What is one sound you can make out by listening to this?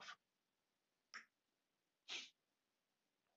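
A small metal tool scrapes a gritty surface in short bursts.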